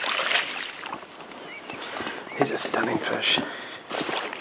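Water splashes and drips from a landing net.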